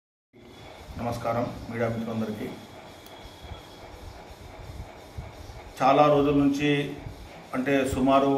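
A man speaks loudly and firmly into a microphone.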